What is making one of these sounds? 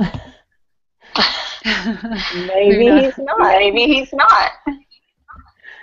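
Two women laugh over an online call.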